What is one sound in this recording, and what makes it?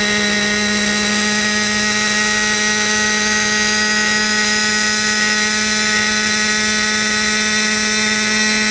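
A small model helicopter's motor whines steadily at a high pitch close by.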